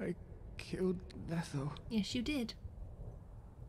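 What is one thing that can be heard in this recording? A young woman talks with animation close to a microphone.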